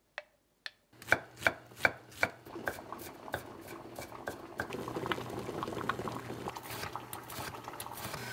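A knife chops rapidly on a wooden cutting board.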